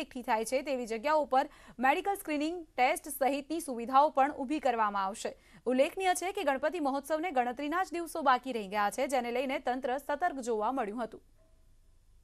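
A young woman reads out the news calmly and clearly into a microphone.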